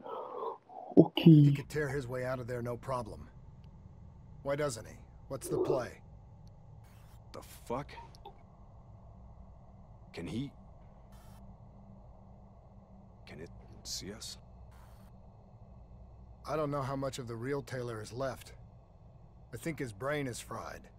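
A man speaks in a low, tense voice over a radio link.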